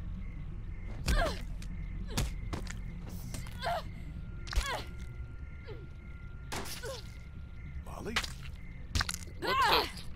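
A pickaxe strikes something with heavy thuds.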